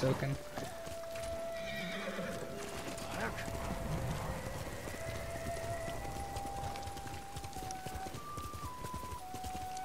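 Horse hooves thud at a gallop on a dirt path.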